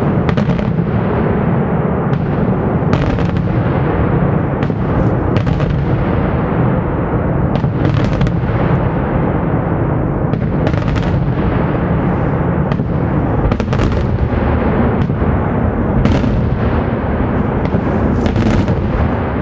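A dense roar of fireworks rumbles on steadily.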